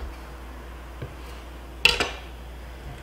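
A knife chops herbs on a wooden board.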